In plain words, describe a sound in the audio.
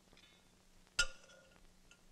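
A metal lid clanks against a metal can.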